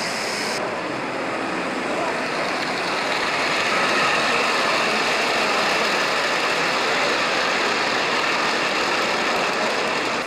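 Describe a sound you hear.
An electric model locomotive hums as it pulls a long line of wagons.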